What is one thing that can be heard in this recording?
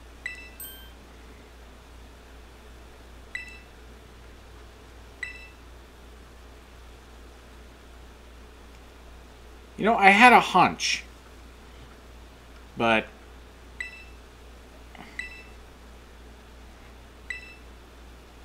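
A short electronic chime sounds now and then.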